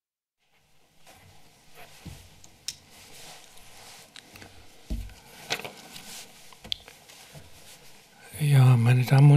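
Paper rustles near a microphone.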